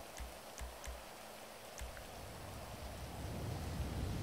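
A game menu gives a short click as the selection moves.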